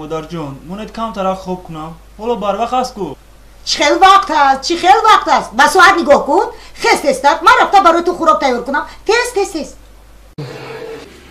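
A middle-aged woman scolds loudly and angrily nearby.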